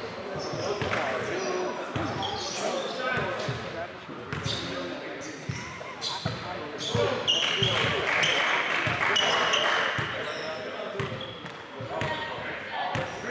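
Sneakers squeak sharply on a gym floor.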